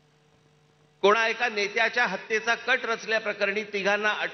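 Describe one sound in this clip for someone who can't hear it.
A middle-aged man speaks forcefully into a microphone through loudspeakers.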